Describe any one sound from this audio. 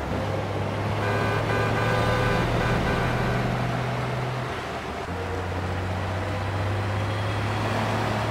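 A heavy truck's engine drones in a video game as it drives down a street.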